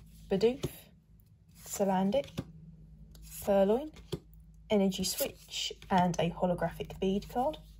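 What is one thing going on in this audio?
Trading cards slide and flick softly between fingers.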